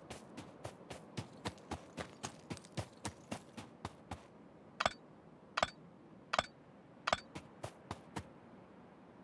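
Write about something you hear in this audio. Footsteps patter quickly on dry ground.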